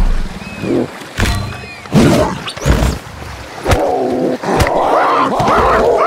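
Animals scuffle in a fierce fight.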